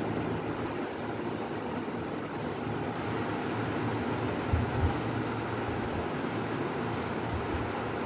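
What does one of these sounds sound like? An eraser rubs and squeaks across a whiteboard.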